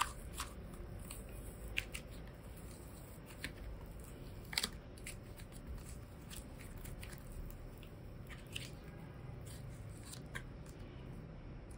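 Soft clay squishes as hands stretch and knead it.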